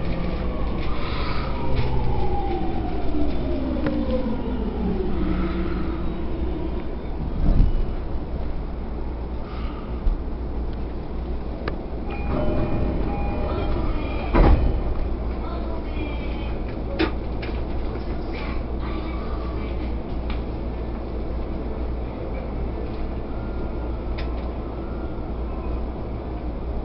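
A train rumbles low and steady.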